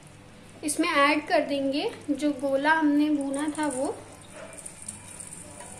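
Butter sizzles and bubbles in a hot pan.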